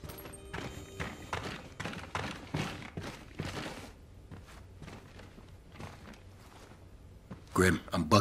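Footsteps pad softly across a floor.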